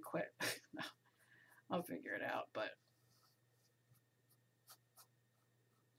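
A brush dabs and scrapes softly on canvas.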